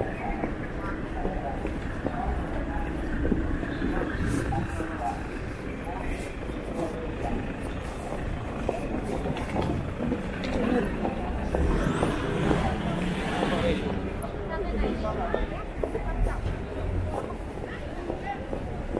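Footsteps of many people walk on pavement outdoors.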